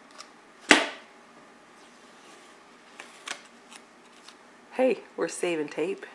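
Fingers press and rub tape onto a wooden piece with soft scratchy taps.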